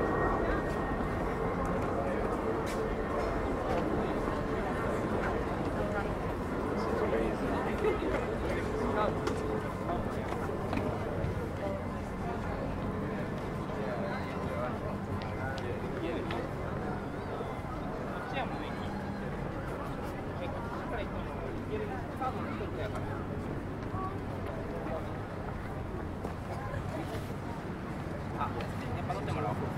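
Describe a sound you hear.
A crowd of people chatters and murmurs outdoors.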